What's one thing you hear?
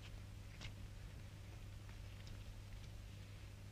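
Cloth rustles as a woman handles a heavy fabric.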